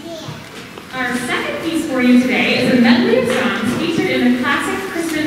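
A choir of young singers begins to sing together.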